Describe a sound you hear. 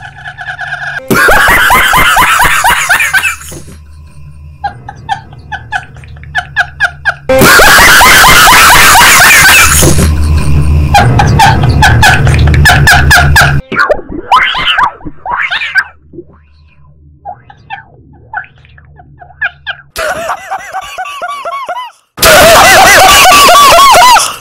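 A young man laughs loudly and shrieks into a microphone.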